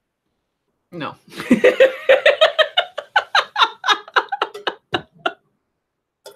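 A woman laughs loudly over a microphone.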